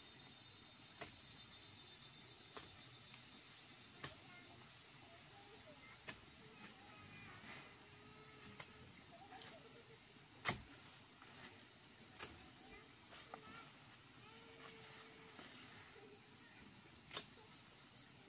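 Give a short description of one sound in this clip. Stems snap sharply as a man picks leaves.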